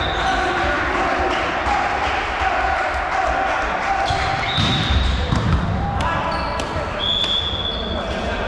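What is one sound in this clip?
Men call out to each other across a large echoing hall.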